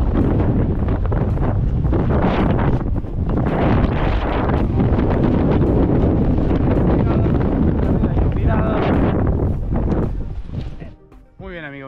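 Strong wind rushes and buffets loudly.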